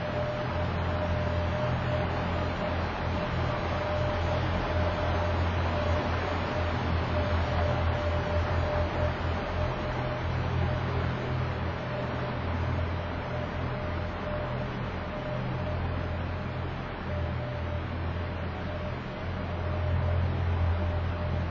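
An ice resurfacing machine's engine hums steadily in a large echoing hall.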